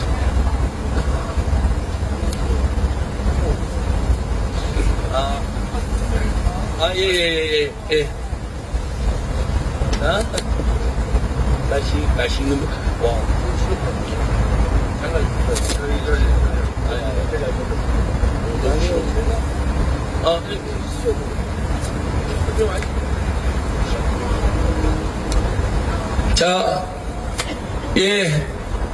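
A middle-aged man speaks with animation into a microphone over a loudspeaker, outdoors.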